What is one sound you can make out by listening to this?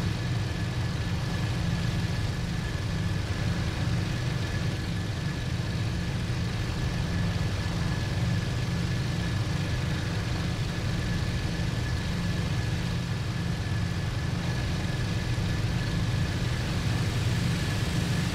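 An aircraft engine drones steadily in flight.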